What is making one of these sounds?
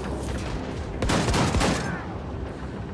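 A heavy gun fires a quick burst of shots.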